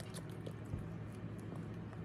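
A monkey smacks its lips softly close by.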